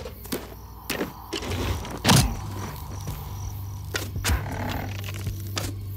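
A bowstring creaks as it is drawn back.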